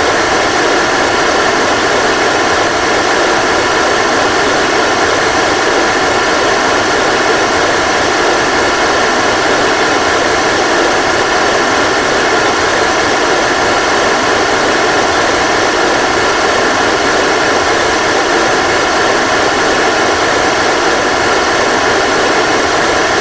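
Rocket engines roar steadily.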